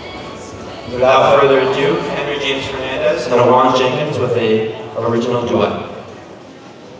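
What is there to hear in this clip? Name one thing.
A singer sings loudly through loudspeakers in a large echoing hall.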